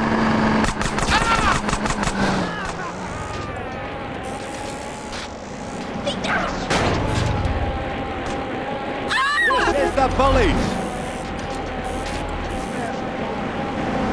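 A BMX bicycle rolls along a paved road.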